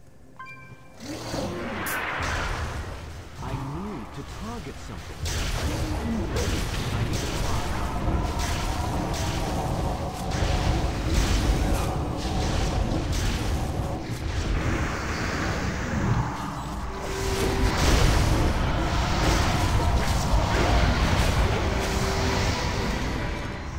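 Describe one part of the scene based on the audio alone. Spells crackle and blast in a game battle.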